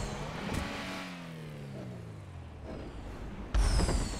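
A car engine revs and drones, its pitch falling.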